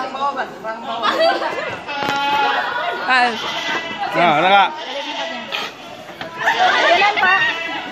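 Goats bleat loudly nearby.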